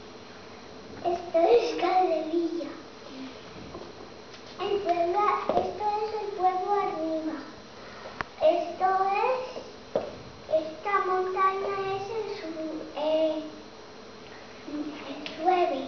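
A young girl speaks haltingly.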